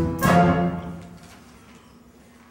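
A band's loud chord rings out and fades away in a large hall.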